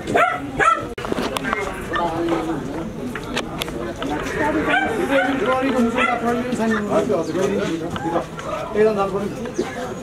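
A crowd of men talk over one another outdoors.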